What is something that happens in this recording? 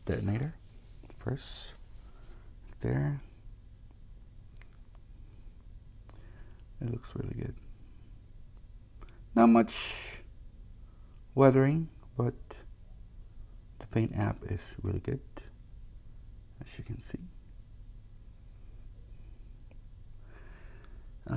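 Small metal parts click softly as they are picked up and turned in the fingers.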